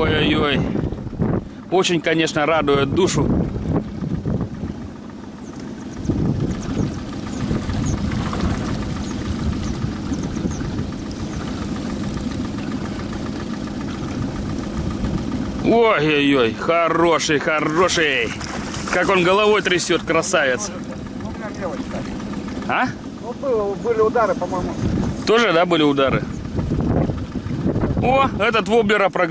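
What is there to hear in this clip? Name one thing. An outboard motor hums steadily.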